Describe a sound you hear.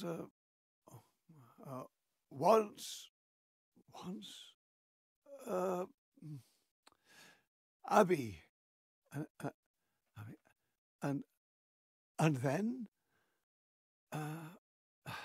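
A man talks with animation close to a microphone, pausing often.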